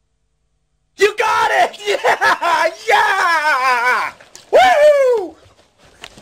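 A man shouts with excitement, close by.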